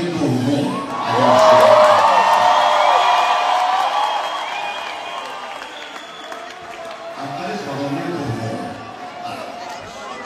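A band plays live music through loudspeakers in a large hall.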